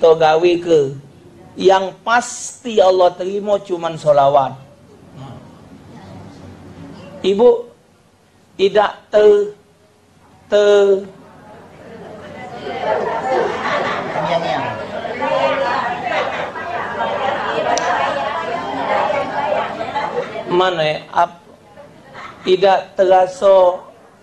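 A man speaks through a microphone in short bursts with pauses.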